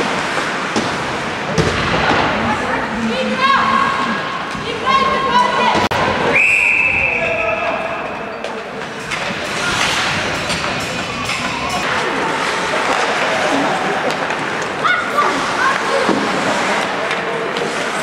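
Skates scrape and carve across ice in a large echoing arena.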